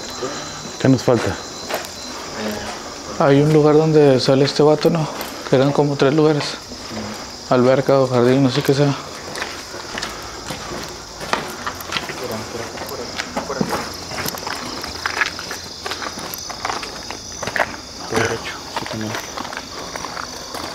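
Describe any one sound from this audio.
Footsteps crunch on leaves and dirt outdoors.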